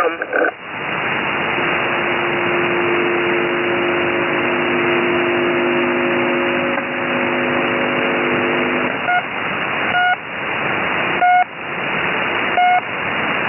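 Radio static hisses steadily from a receiver.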